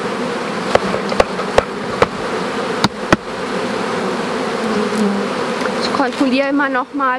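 Bees buzz steadily all around.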